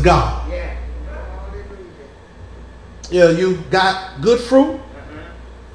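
A man preaches with emotion through a microphone in an echoing hall.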